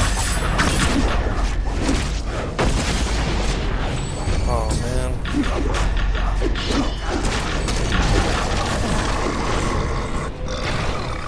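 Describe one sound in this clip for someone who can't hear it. Spell blasts and hits crash loudly during a fight.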